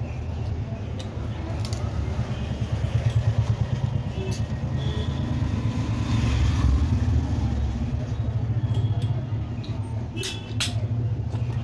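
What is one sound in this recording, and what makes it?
Metal parts clink and tap against each other.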